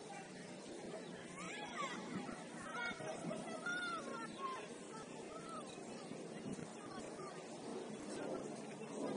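A small crowd chatters and calls out at a distance, outdoors.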